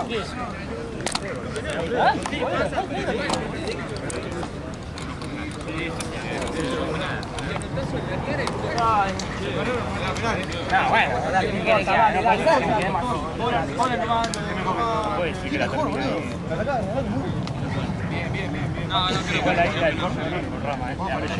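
Young men shout and call out to each other outdoors.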